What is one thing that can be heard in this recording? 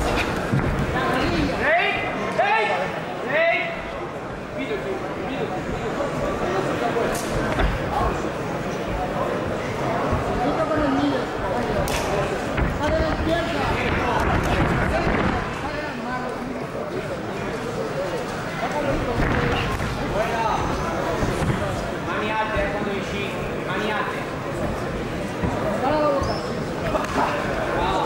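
Gloved punches and kicks thud against bodies.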